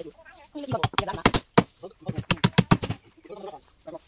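A staple gun fires rapidly into wood.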